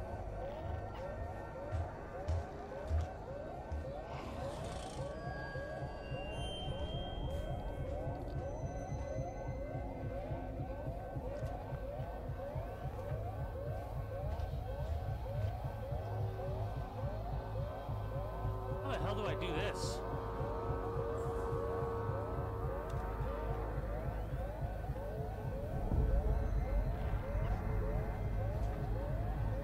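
A motion tracker beeps in quick, steady chirps.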